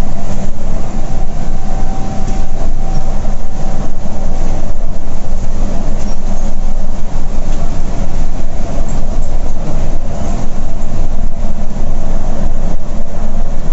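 A diesel coach engine drones at highway speed, heard from inside the cab.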